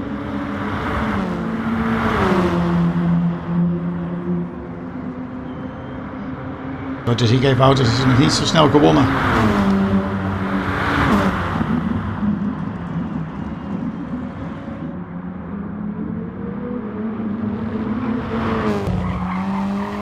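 Other racing cars whoosh past close by.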